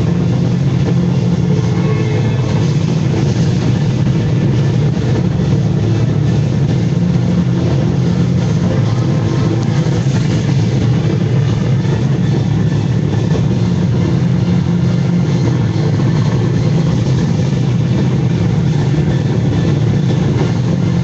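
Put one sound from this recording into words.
A film soundtrack plays loudly through loudspeakers.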